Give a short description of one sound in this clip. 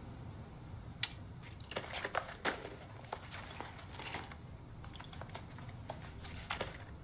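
Gear and equipment rustle and clack in short bursts.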